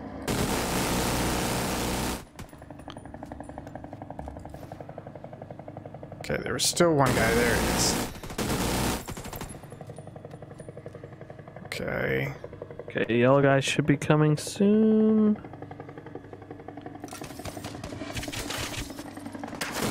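Gunfire bursts from a heavy machine gun.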